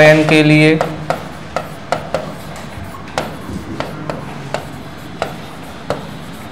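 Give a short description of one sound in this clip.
A pen taps and clicks on a hard writing surface.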